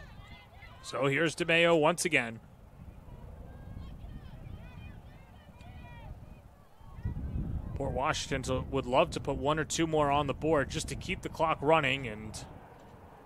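Girls on a sports field shout and cheer outdoors.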